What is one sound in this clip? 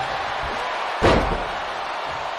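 A heavy body slams hard onto a wrestling ring.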